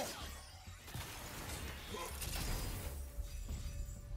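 A heavy chest lid creaks open with a magical whoosh.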